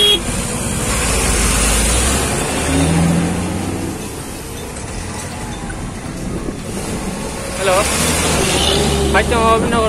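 Wind rushes past an open vehicle.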